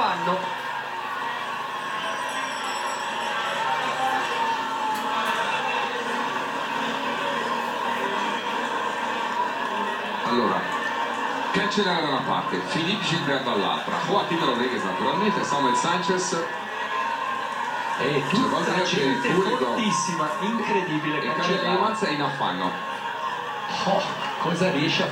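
A crowd cheers and shouts along the roadside.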